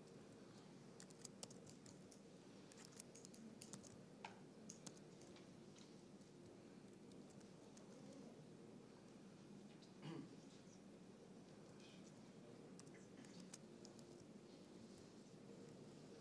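A man types on a laptop keyboard close by.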